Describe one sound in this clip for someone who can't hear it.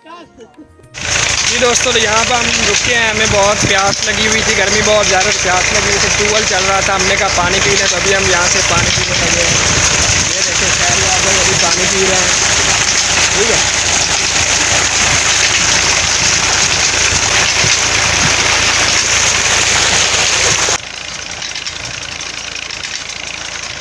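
Water gushes loudly from a pipe and splashes into a pool.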